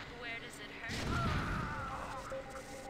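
An explosion bursts with a short boom.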